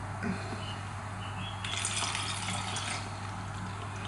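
Liquid pours from a bottle into a shaker.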